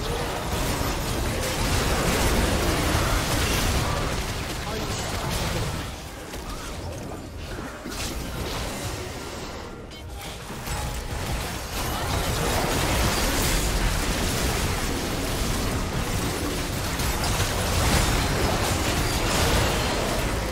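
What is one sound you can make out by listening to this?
Magic blasts and clashes of a video game battle boom and crackle.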